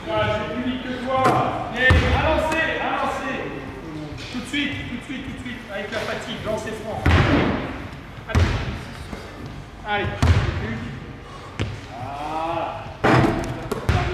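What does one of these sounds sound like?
A basketball bangs against a backboard and rim.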